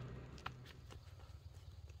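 A small child runs along a dirt path with quick, light footsteps.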